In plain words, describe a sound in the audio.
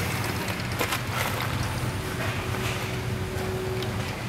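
A young man gulps a drink from a bottle close by.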